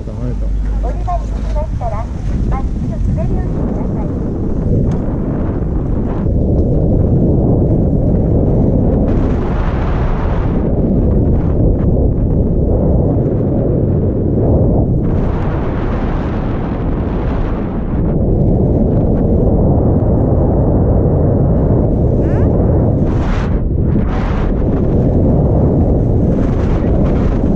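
Wind rushes loudly past, roaring throughout.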